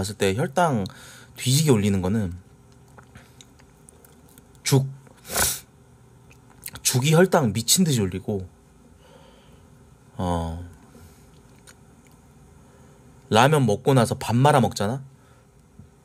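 A young man talks casually into a nearby microphone, in short bursts.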